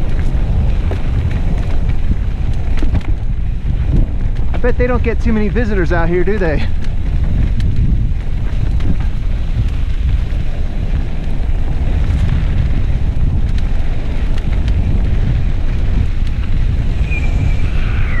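Mountain bike tyres roll over a dirt singletrack.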